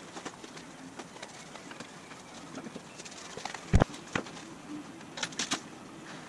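Heavy canvas rustles as it is handled.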